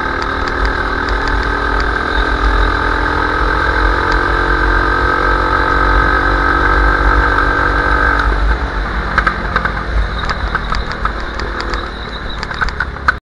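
A go-kart engine drones at full throttle, then eases off.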